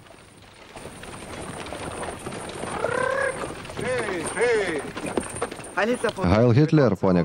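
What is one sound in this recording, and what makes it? Horse hooves clop on a dirt track as a cart approaches.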